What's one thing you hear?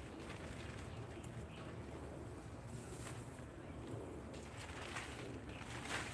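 A plastic tarp rustles and crinkles as it is pulled.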